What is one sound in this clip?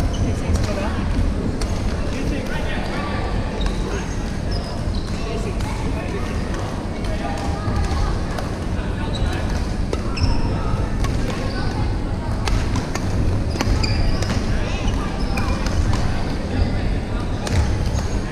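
Shoes squeak on a hard court floor in a large echoing hall.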